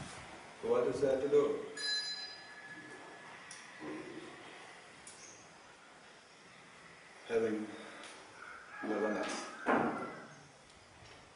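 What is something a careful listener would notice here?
A middle-aged man speaks calmly and haltingly, close by.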